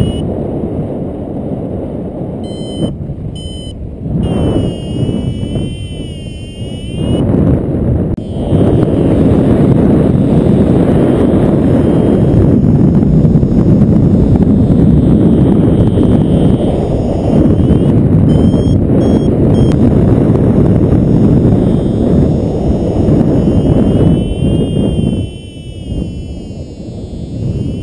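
Wind roars and buffets against a microphone in flight.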